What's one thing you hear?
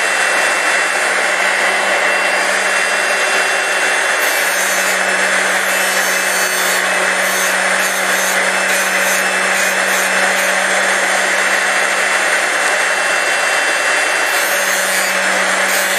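A machine motor hums steadily close by.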